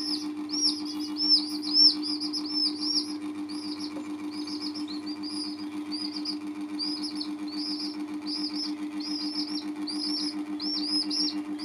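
Young chicks peep shrilly.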